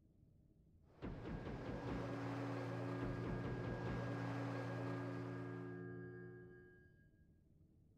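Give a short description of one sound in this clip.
Magic spells burst with a bright rushing sound.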